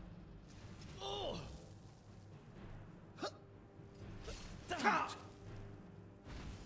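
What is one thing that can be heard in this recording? Magical ice crackles and hisses in bursts.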